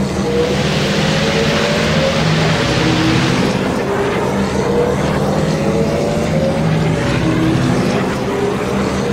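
A racing engine roars and whines steadily at high speed.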